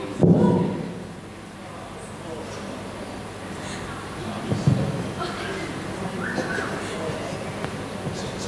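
A young man speaks calmly through a microphone and loudspeakers in a large hall.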